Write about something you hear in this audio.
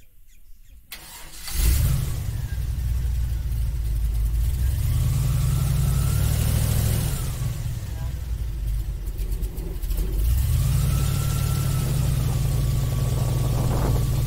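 An airboat engine starts up and roars loudly close by.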